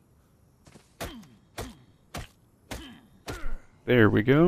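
A stone hatchet chops into a tree trunk with dull thuds.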